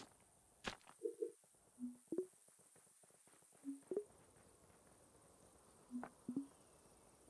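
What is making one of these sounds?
Short soft electronic blips sound again and again as blocks are placed.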